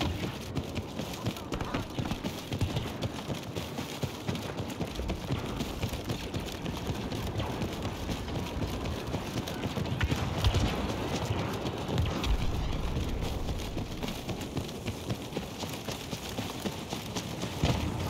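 Heavy footsteps crunch quickly over rocky ground.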